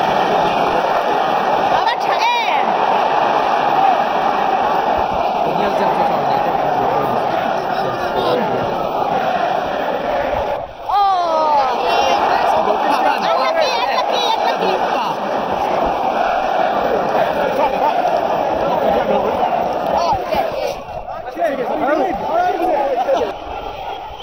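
A large stadium crowd sings and chants loudly, echoing around the stands.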